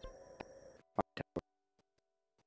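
Short electronic blips chime quickly.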